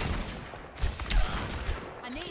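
A revolver fires sharp shots.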